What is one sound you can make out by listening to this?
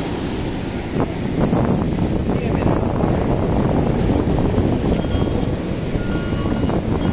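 Waves wash and break onto a shore.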